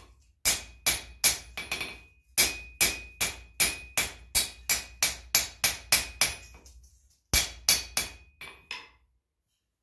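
A hammer rings sharply on an anvil in quick, steady blows.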